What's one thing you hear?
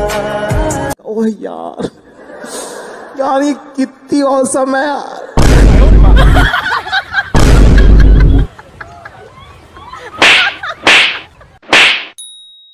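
Young children shout and laugh nearby.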